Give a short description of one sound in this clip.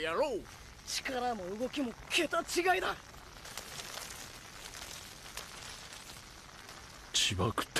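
A young man speaks in a low, calm voice.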